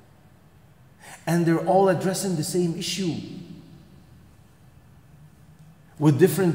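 A middle-aged man speaks with animation into a microphone, echoing in a large hall.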